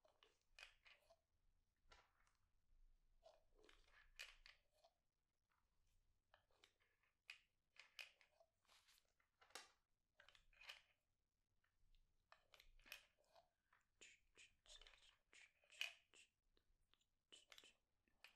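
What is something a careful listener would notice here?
Pills drop and rattle into a plastic bottle.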